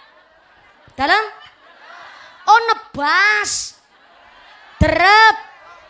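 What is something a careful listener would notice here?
A young woman sings loudly into a microphone over loudspeakers, in short bursts.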